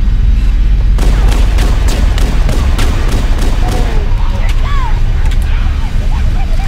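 A pistol fires shots in quick bursts.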